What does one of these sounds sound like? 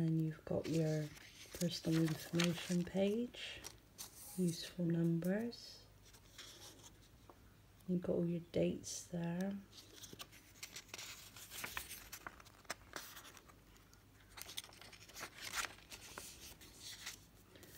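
Paper pages rustle and flip as a planner's pages are turned by hand.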